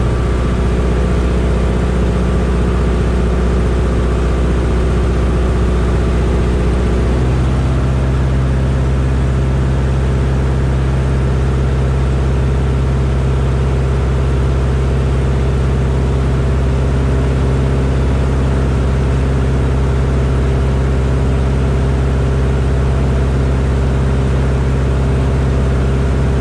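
A small aircraft engine drones loudly and steadily from up close, its pitch shifting once.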